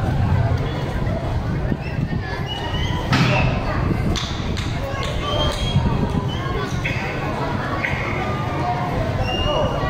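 Sneakers squeak on a hard court.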